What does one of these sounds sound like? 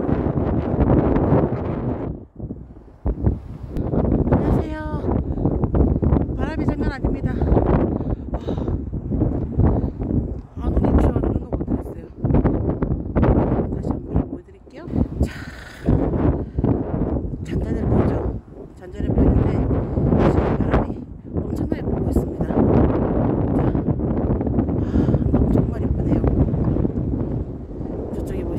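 Strong wind buffets a close microphone with a low rumble.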